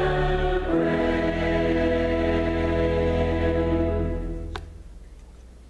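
A choir sings a sustained chord in an echoing hall.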